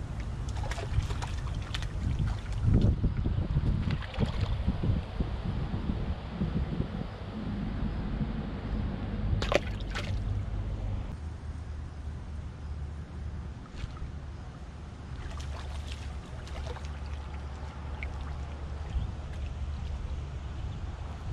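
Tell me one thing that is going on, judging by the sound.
A hooked fish splashes in the water close by.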